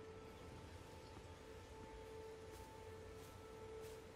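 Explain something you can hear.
Footsteps crunch softly on grass and rock.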